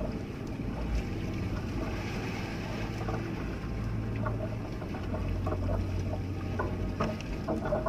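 Waves wash against a boat's hull.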